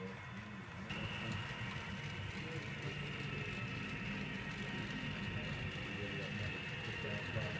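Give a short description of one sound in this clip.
Model train wheels rumble and clatter along the track.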